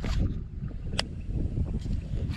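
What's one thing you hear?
A fishing reel clicks.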